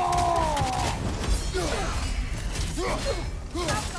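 A heavy blade whooshes and strikes with a hit.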